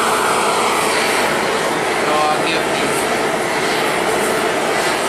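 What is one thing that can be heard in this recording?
A gas torch roars steadily with a loud hissing flame.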